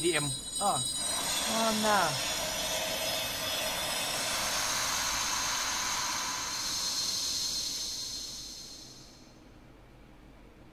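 A bright, shimmering magical chime swells, rings on and slowly fades away.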